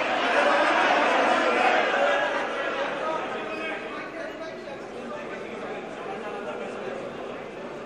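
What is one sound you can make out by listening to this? An elderly man preaches loudly and with animation through a microphone in an echoing hall.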